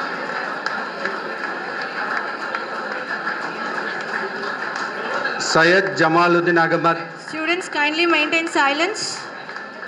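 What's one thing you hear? A few people clap their hands nearby.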